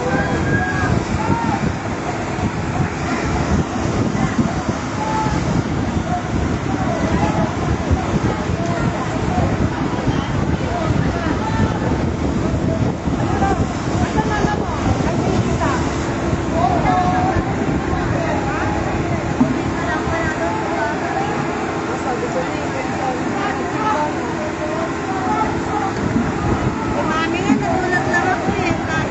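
A crowd of people shout and talk excitedly nearby.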